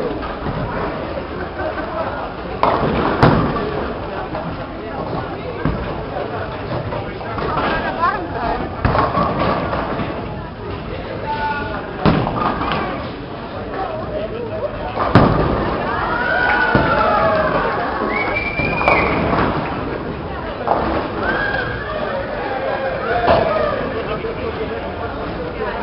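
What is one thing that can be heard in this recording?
A crowd of people chatter in a noisy echoing hall.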